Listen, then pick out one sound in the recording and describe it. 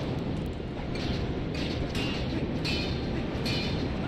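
A sword swishes and clangs in quick strikes.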